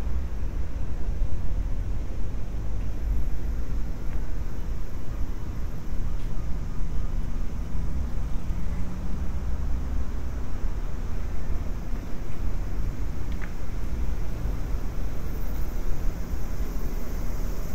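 Wind blows outdoors, rumbling low and steady.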